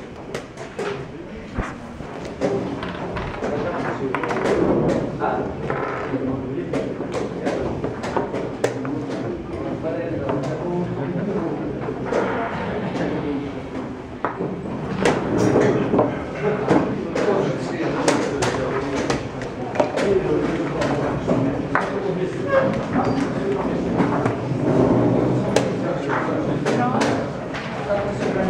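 Several adults murmur and talk quietly nearby.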